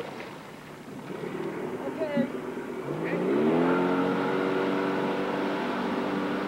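Water splashes and sprays around a water skier being pulled up.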